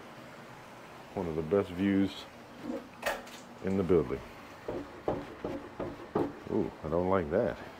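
A door opens and shuts with a click.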